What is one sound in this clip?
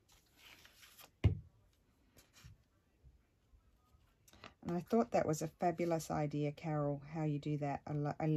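Paper rustles as it is lifted and pressed down.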